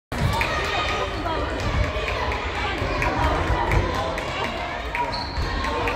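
Basketballs bounce on a hard floor.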